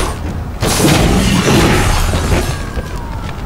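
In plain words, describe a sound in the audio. Gunshots bang in rapid bursts.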